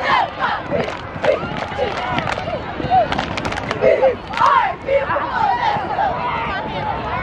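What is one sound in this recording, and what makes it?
Young girls shout and cheer loudly outdoors.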